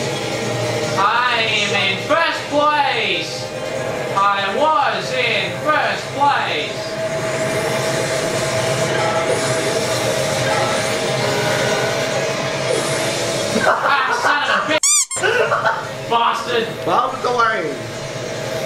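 Game sound effects whoosh and zing in quick bursts through a television loudspeaker.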